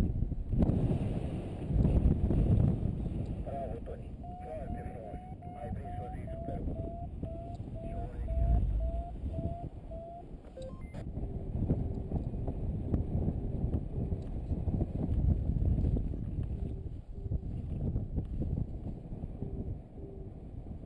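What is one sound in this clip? Wind rushes and buffets loudly in flight.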